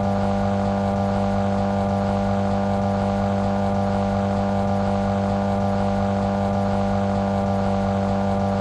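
A car engine hums steadily as it drives.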